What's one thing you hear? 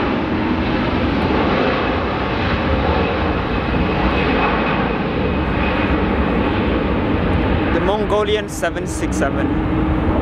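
A jet airliner's engines roar steadily as it taxis.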